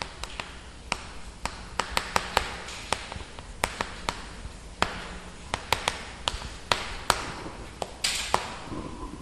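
Chalk taps and scratches sharply on a blackboard.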